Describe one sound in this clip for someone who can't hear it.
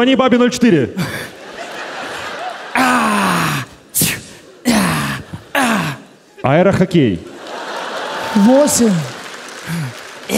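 An audience laughs and claps in a large hall.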